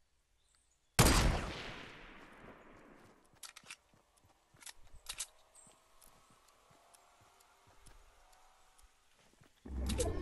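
A rifle fires a loud shot that echoes and slowly fades.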